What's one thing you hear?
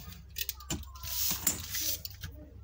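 Paper rustles and slides as it is turned.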